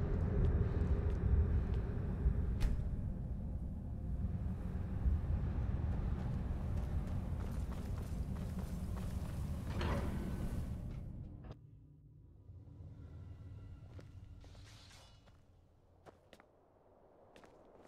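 Armoured footsteps thud on stone.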